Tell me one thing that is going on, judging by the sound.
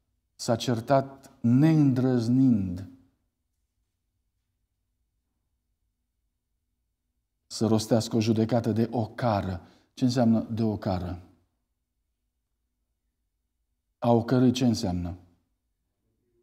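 A middle-aged man speaks calmly and earnestly into a microphone, with pauses between phrases.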